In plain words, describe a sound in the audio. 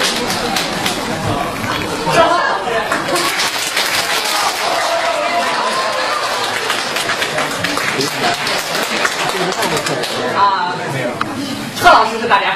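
A crowd murmurs and talks over one another.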